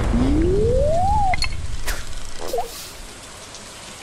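A fishing line whips out.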